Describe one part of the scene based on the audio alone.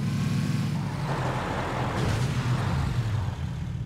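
Tyres crunch over rough ground.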